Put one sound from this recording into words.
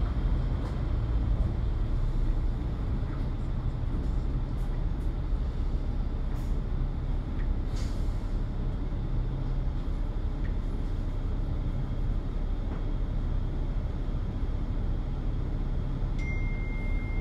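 A bus engine rumbles steadily.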